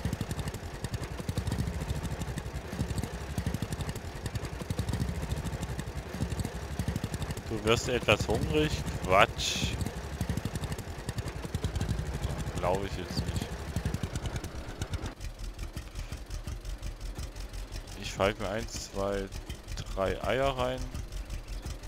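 A tractor engine chugs steadily.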